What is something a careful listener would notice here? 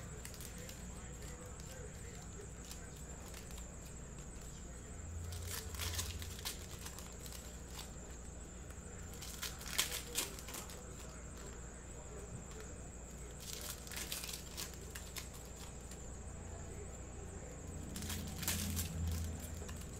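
Foil card wrappers crinkle and tear as hands open packs.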